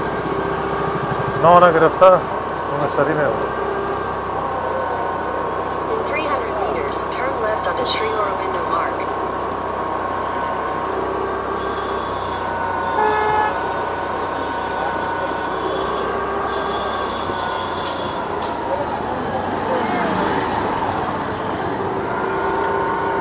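Street traffic passes nearby.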